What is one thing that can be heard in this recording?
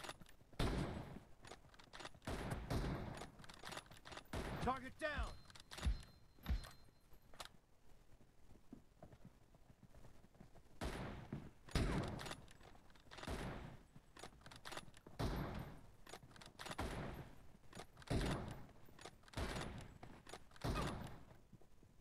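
Rifle gunfire crackles in short, rapid bursts.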